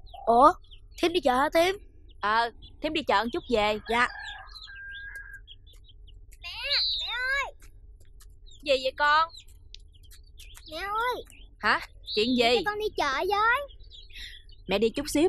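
A woman calls out loudly nearby.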